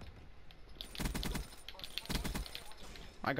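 Gunfire bursts in rapid shots.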